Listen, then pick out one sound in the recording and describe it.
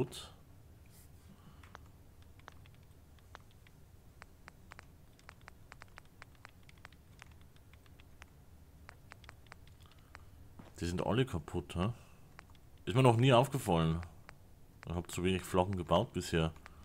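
Short soft clicks tick as a game menu is scrolled through.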